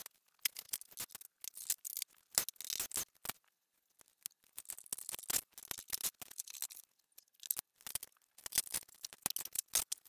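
Plastic parts click and rattle as a cover is handled.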